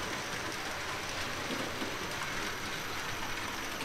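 A model train whirs and rattles along its track.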